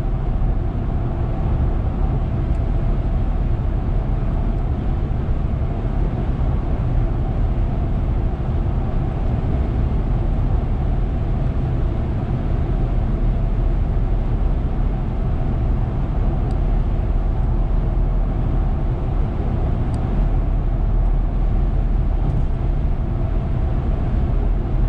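A car hums steadily along a highway, heard from inside.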